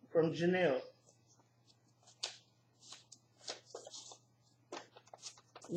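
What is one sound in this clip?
Paper rustles as an envelope is handled.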